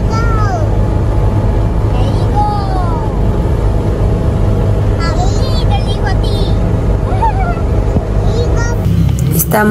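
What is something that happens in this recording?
Young children squeal and laugh playfully nearby.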